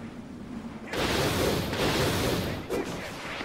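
A sharp crack of impact sounds from a game.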